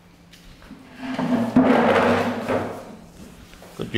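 Wooden chairs scrape across the floor.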